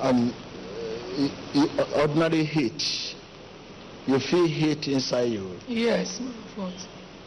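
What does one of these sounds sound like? A man speaks emotionally and loudly through a microphone.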